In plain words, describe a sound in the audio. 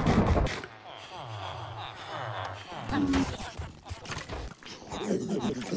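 Villager characters grunt and murmur in low, nasal tones.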